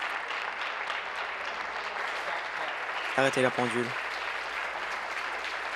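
A crowd applauds steadily in a large hall.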